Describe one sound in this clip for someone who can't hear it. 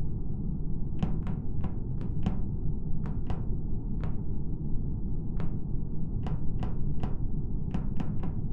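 Small footsteps patter quickly across a metal floor in a game.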